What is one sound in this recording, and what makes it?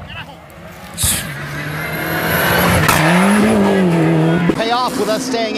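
A rally car engine revs loudly as it speeds past.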